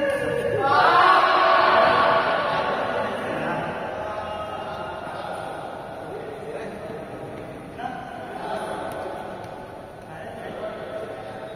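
Young men shout and call out in a large echoing hall.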